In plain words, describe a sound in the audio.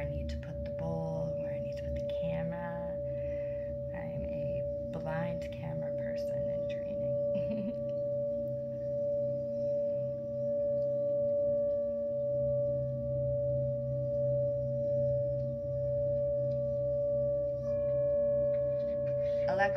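A singing bowl rings with a steady, humming tone as a mallet rubs its rim.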